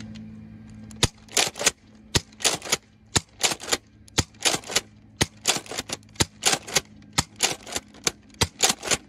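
A toy foam blaster fires again and again, with a sharp snap and a short whoosh about once a second.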